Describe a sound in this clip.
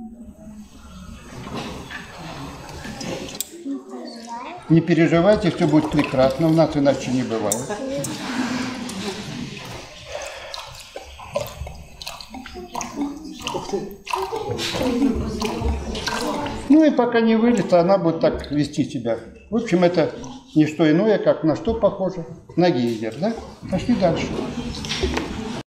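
An elderly man talks calmly to an audience.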